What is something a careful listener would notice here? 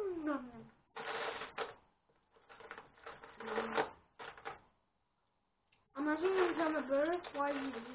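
Plastic bricks rattle as a boy rummages through a box of pieces.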